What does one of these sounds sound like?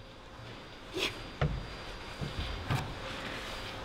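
Hands and shoes knock and scuff against climbing holds.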